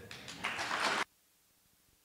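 A young man speaks through a microphone in a large hall.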